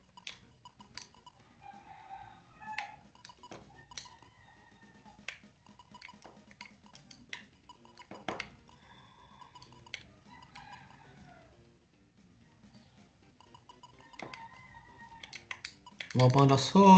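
Short electronic beeps sound as a game menu cursor moves.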